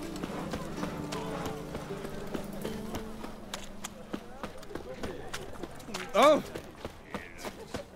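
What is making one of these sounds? Footsteps run quickly over stone and wood.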